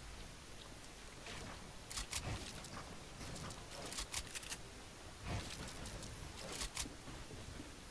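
Building pieces snap into place with sharp clicks in a video game.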